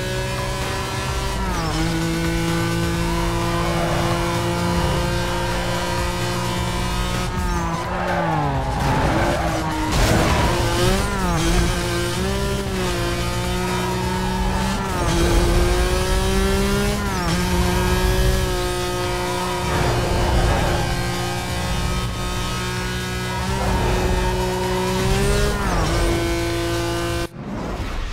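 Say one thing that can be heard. A car engine roars at high revs, rising and dropping with each gear change.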